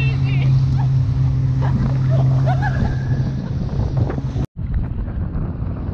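Water rushes and splashes behind a speeding craft.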